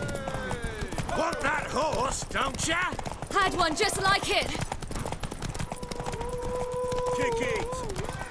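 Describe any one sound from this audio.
A horse gallops along a dirt path, its hooves thudding quickly.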